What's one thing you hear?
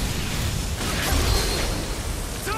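A blade slashes into flesh with a wet, heavy impact.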